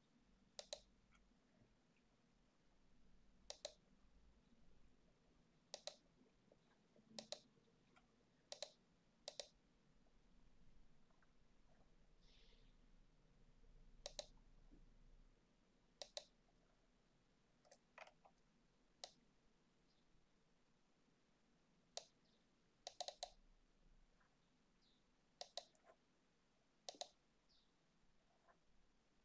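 Keys on a keyboard tap softly.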